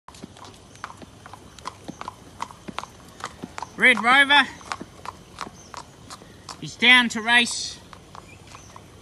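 A horse's hooves clop steadily on pavement.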